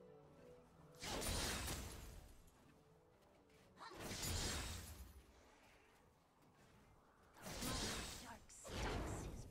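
Magic blasts and clashing blows from a video game fight burst out in loud surges.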